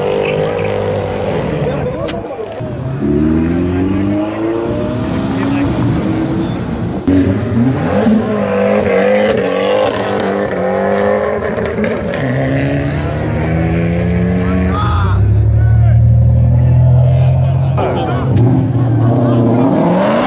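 Car engines rev loudly and roar past one after another.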